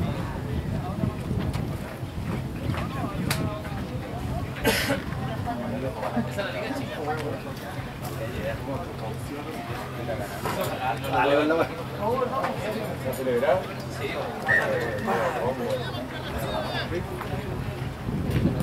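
Men shout calls to each other outdoors during a rugby match.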